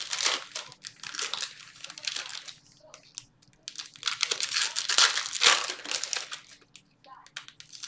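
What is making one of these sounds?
Trading cards rustle and slide as a hand flips through a stack.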